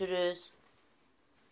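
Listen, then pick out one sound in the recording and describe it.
A young woman speaks a brief word close by.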